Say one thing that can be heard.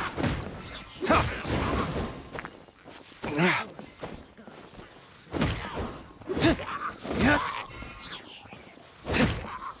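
A sword strikes with sharp, ringing impacts.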